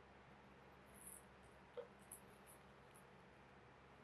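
A rubber case is set down on a table with a light tap.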